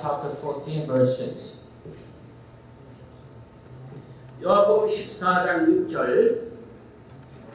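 An elderly man speaks calmly into a microphone, heard through a loudspeaker in a large room.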